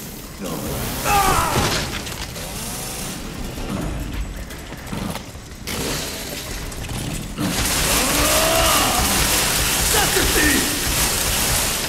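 A monster shrieks and growls.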